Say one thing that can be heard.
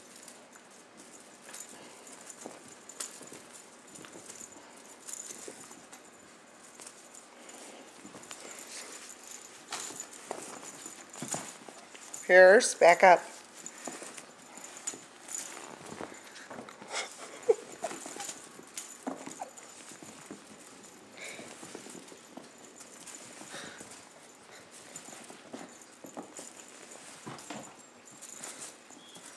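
Kittens scamper and pounce on a carpet.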